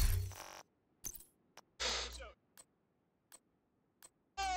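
Short electronic clicks sound as menu items are picked.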